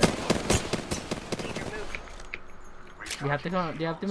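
A rifle fires several quick shots.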